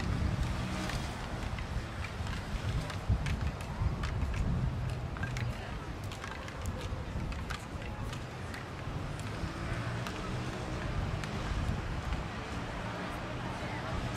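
Hockey sticks clack together as players tap sticks.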